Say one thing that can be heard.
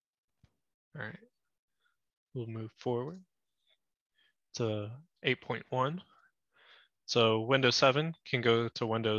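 A man speaks calmly into a close microphone, as if presenting over an online call.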